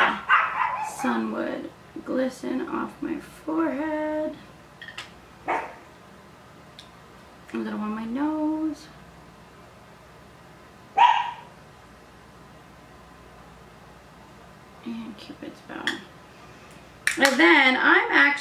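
A woman talks calmly close by, with pauses.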